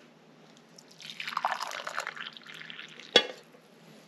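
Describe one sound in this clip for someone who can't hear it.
Coffee pours into a mug, the sound rising in pitch as it fills.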